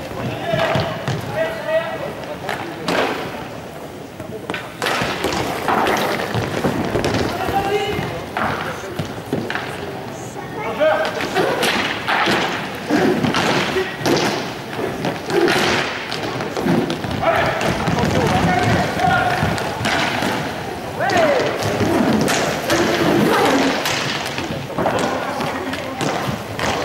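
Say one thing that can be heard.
Sticks clack against a ball and against each other on a hard floor.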